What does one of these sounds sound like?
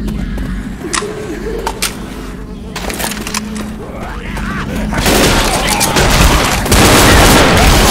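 A shotgun fires loud single blasts.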